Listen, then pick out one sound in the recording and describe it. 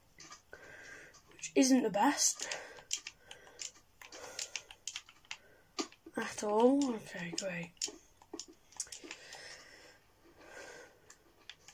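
Game blocks crunch softly as they are dug out one after another.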